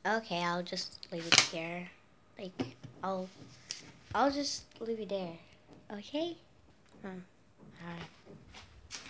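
A young girl talks close by, in a calm voice.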